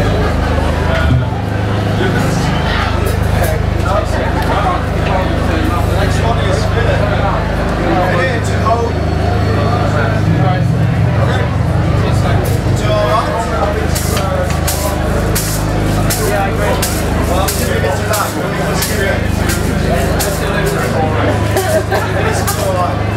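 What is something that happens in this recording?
A drummer pounds the drums and crashes the cymbals.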